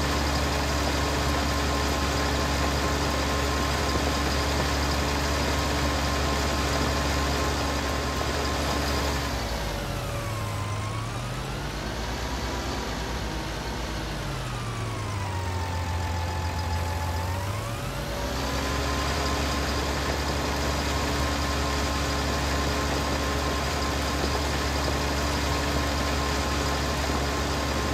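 A tractor engine drones steadily, dipping lower in pitch for a while before rising back.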